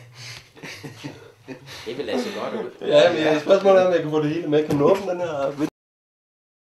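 An older man talks with animation nearby.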